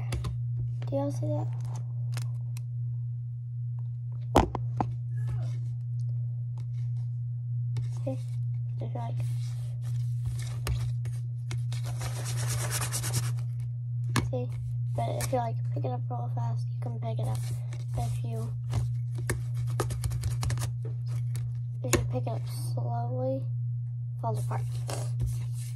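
A young girl talks softly and close by.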